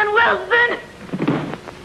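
A woman cries out in a high voice, close by.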